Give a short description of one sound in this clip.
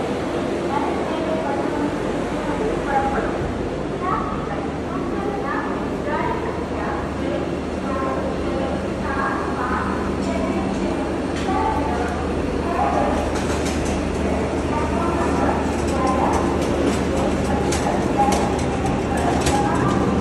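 A train hums steadily beside a platform.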